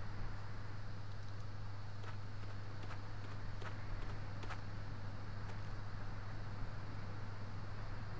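Wind blows steadily.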